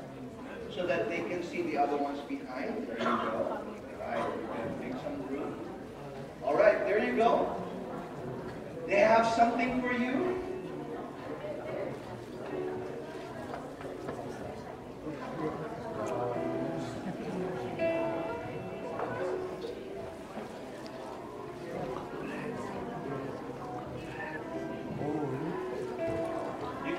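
A large choir of women sings together in an echoing hall.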